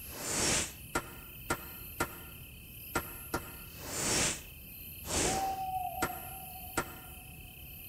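Short clicks sound as menu choices are made.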